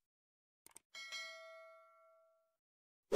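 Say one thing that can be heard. A small bell chimes and rings out.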